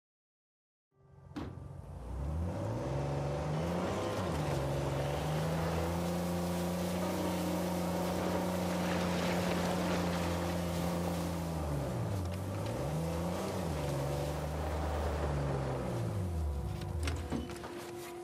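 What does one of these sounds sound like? A jeep engine rumbles and revs up and down as it drives.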